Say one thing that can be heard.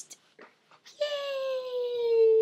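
A baby coos and babbles.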